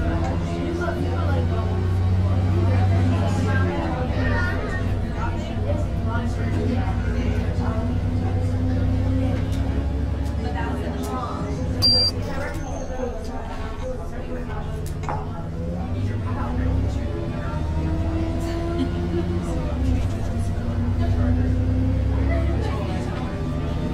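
A bus engine rumbles steadily, its pitch rising and falling as the bus speeds up and slows down.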